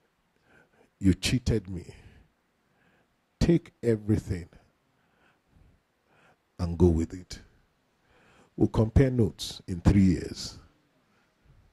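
A man speaks emphatically into a microphone in bursts, with pauses between phrases.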